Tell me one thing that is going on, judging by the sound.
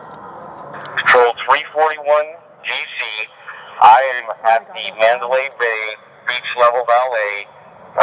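A man shouts urgently, close to the microphone.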